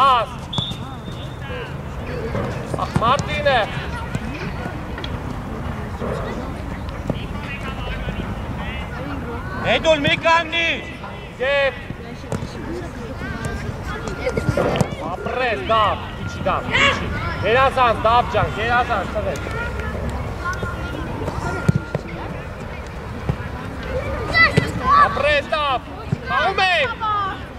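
Young boys shout and call out across an open field.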